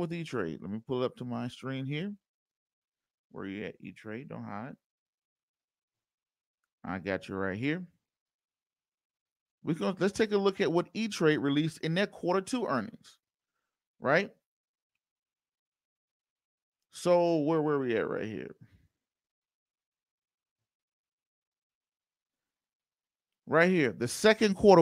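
A man speaks steadily into a microphone, with pauses.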